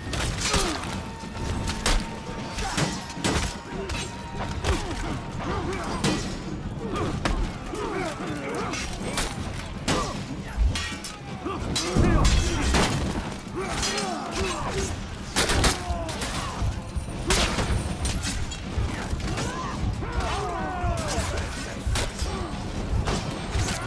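Swords clash and strike shields in a loud melee.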